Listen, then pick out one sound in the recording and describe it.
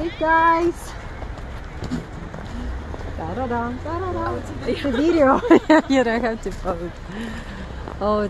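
Young people laugh and talk nearby outdoors.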